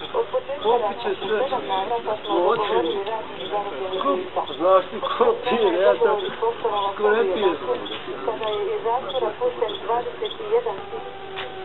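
A group of young men and women chat and laugh close by.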